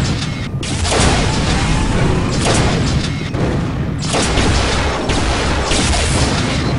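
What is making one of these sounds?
A gun fires rapid, loud blasts in bursts.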